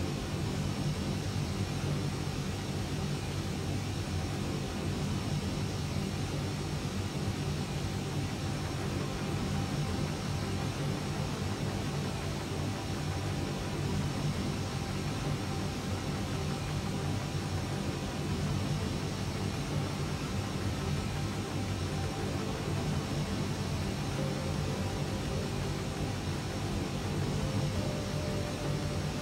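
Jet engines hum steadily and loudly.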